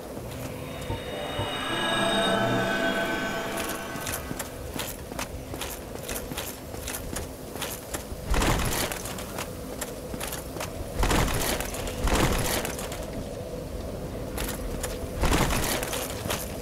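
Swords swish and clang in a fight.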